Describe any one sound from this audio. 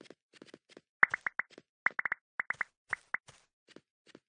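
Short bright clicks sound in quick succession.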